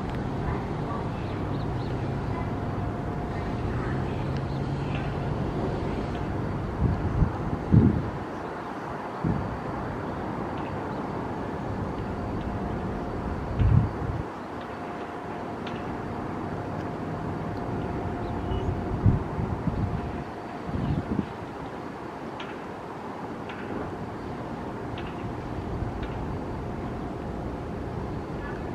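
Parked subway trains hum steadily nearby.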